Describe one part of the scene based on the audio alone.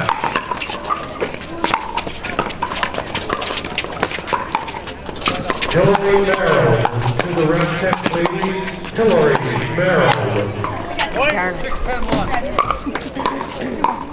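Paddles knock a plastic ball back and forth in sharp pops.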